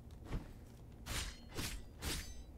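Swords slash and clang in quick strikes.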